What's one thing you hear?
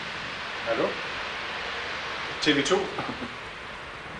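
A middle-aged man talks into a phone nearby.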